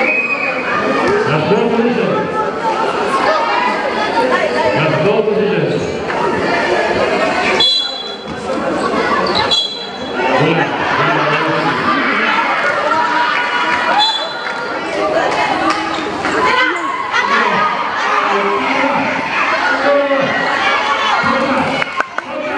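A crowd of young spectators cheers and chatters loudly nearby.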